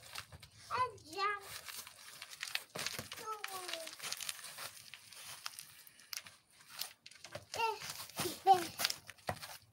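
A young child squeals and babbles excitedly close by.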